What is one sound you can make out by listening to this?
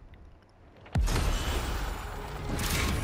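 Rumbling action sounds play from a video game.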